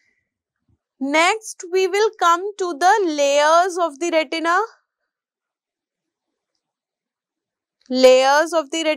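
A woman speaks calmly into a close microphone, pausing now and then.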